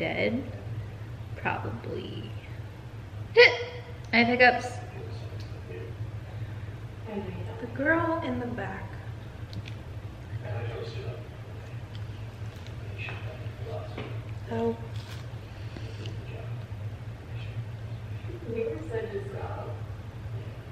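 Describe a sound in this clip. Young women talk casually close by.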